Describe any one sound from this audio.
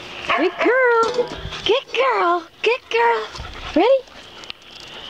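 A dog whines and yelps close by in high, rising cries.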